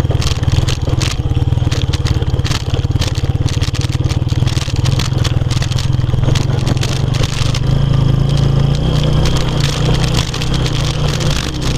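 A motorcycle engine putters steadily while riding.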